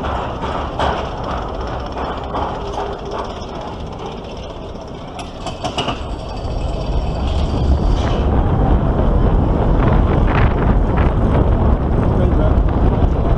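A roller coaster car rattles and clacks along its track.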